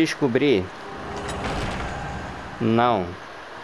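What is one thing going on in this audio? Heavy doors grind open with a low magical hum.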